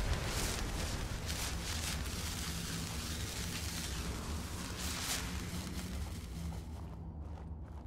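A magical whoosh swirls and fades.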